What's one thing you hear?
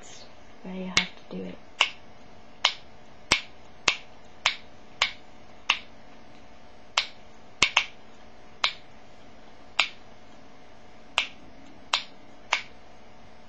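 A plastic container clicks as it is twisted in a woman's hands.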